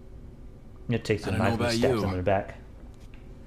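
A man speaks softly in a low voice.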